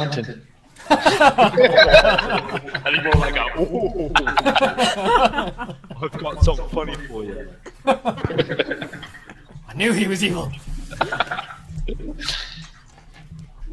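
A young man laughs heartily through a headset microphone on an online call.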